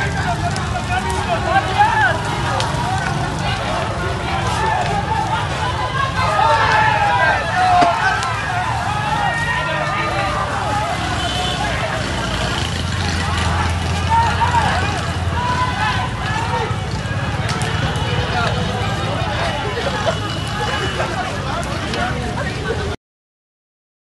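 A crowd of men shouts and chatters nearby outdoors.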